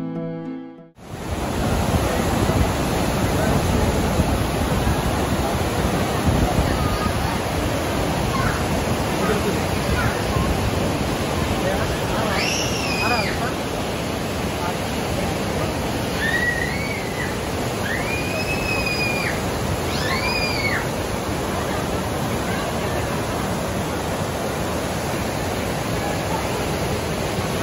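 Turbulent river rapids rush and roar loudly.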